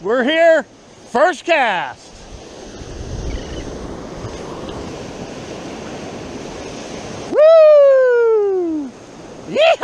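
Waves break and wash over the shore nearby.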